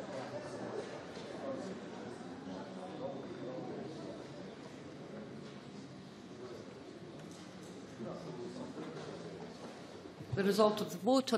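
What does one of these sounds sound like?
Many people murmur and chatter in a large echoing chamber.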